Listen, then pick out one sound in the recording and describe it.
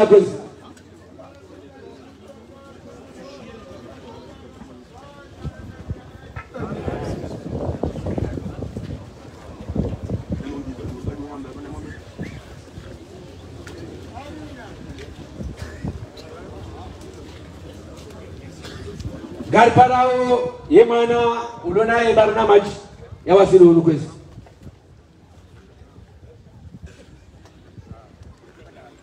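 A crowd of men murmurs and talks in the background.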